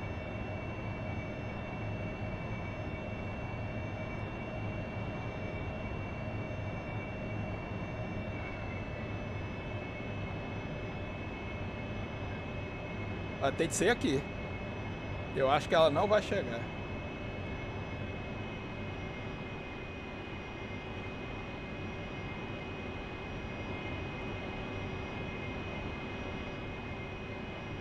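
A jet engine hums steadily, heard from inside the cockpit.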